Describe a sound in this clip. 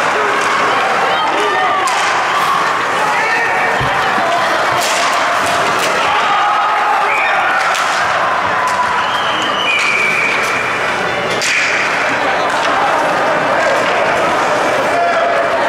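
A crowd of players and spectators shouts and cheers in a large echoing rink.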